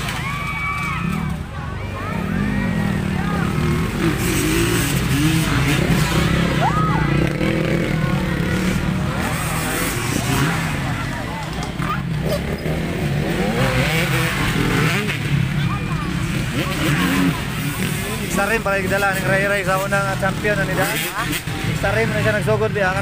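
A crowd of people chatters and shouts outdoors.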